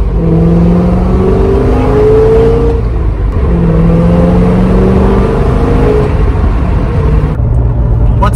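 Wind rushes past a moving car.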